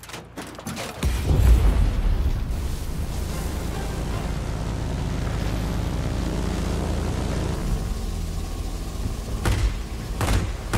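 A propeller aircraft engine drones steadily and loudly.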